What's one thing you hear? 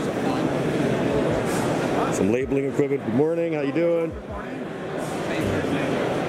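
Many voices murmur in the background of a large hall.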